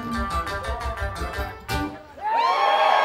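A bluegrass band plays lively music.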